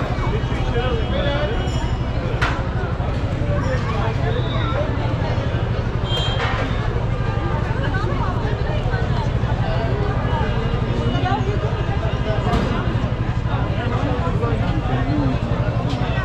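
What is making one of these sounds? A busy crowd chatters all around outdoors.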